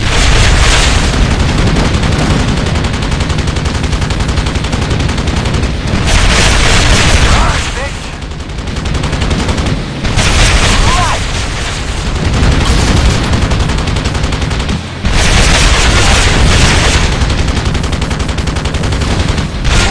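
Rockets whoosh from a helicopter in loud bursts.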